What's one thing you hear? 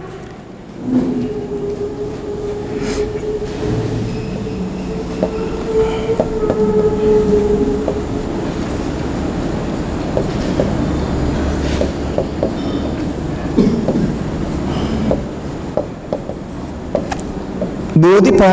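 A pen taps and scratches on a board.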